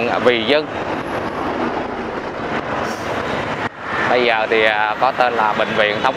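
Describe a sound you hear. A bus rumbles past.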